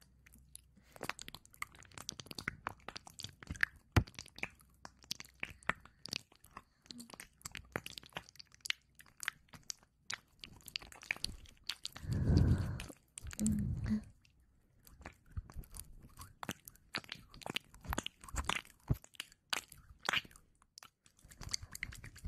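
Fingers tap and scratch on microphones with crisp clicks.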